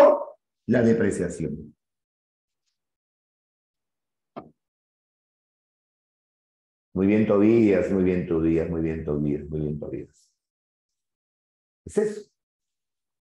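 A man speaks with animation into a close microphone, pausing between phrases.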